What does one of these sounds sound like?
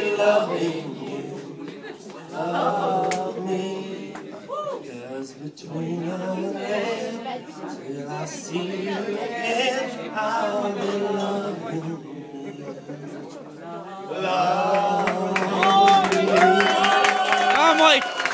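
A man sings into a microphone through loudspeakers.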